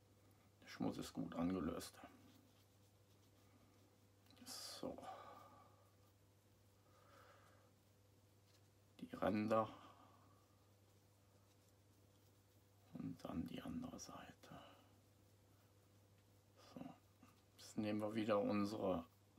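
A small brush scrubs softly against a coin.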